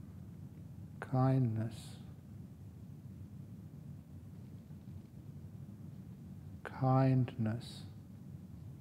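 An elderly man speaks a few words calmly and slowly, close by.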